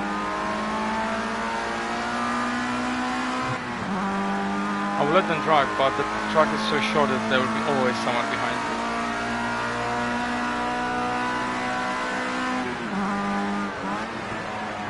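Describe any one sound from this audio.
A racing car engine drones at high revs, dropping in pitch with each gear change.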